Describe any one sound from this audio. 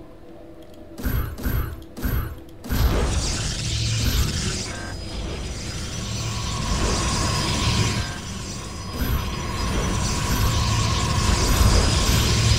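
Electronic warping sounds hum and shimmer as game units materialise.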